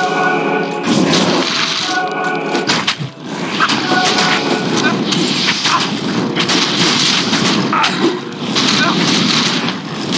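Swords and bones clash in a chaotic fight.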